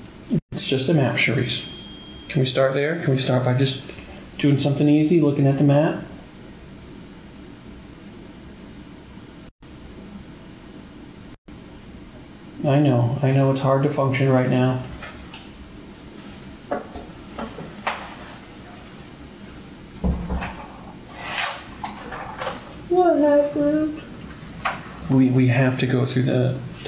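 A man speaks quietly and closely, heard through a room microphone.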